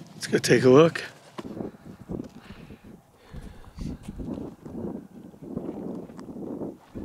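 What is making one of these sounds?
A man speaks calmly and close by, outdoors.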